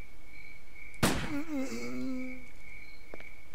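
A pistol fires a single loud shot that rings out.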